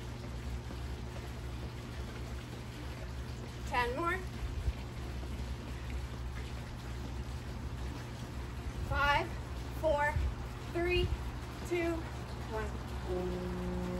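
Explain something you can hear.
Feet land with soft thuds on a hard floor.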